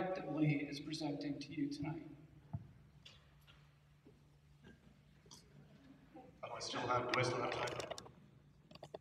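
A man speaks steadily into a microphone, amplified through loudspeakers in a large echoing hall.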